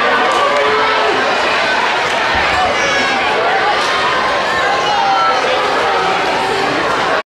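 A crowd of children chatters and shouts in a large echoing hall.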